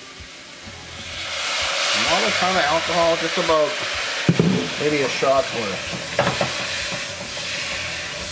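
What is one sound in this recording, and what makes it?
Food sizzles loudly in a hot pot.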